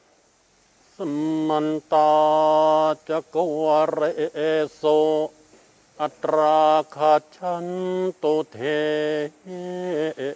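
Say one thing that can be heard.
A man chants slowly in a steady, sing-song voice, heard through an online call.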